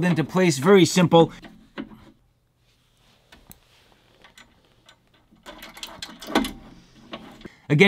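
Small plastic and metal parts click and knock as they are fitted together.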